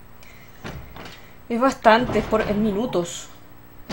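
A heavy door creaks open slowly.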